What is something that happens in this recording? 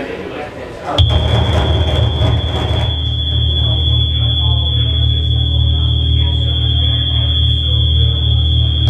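Loud electronic music with a deep pulsing bass booms through speakers in a room.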